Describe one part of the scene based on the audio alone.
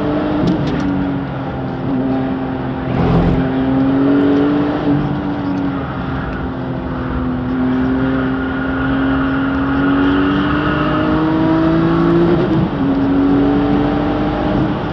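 A car engine roars loudly from inside the car, its pitch rising and falling as the car speeds and shifts gears.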